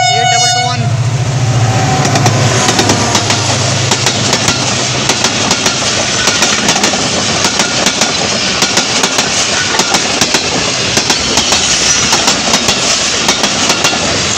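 Train wheels clatter rhythmically over the rail joints.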